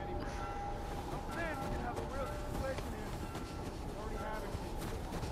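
Wind howls in a snowstorm.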